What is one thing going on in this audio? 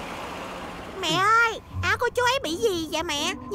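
A young woman speaks in a high, animated voice.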